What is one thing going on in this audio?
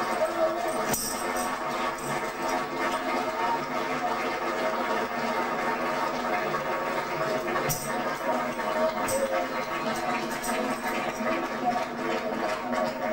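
A crowd sings through a television loudspeaker.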